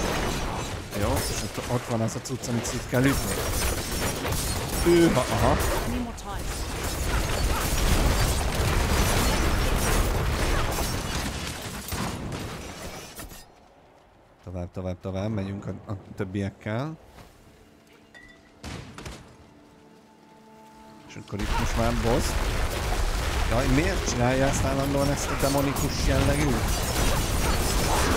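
Loud fighting sound effects clash and boom.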